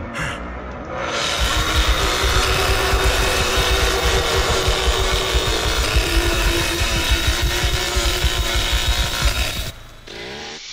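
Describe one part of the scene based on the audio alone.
A chainsaw revs loudly and roars.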